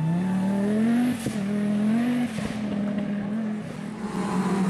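A rally car races away at full throttle on a gravel road.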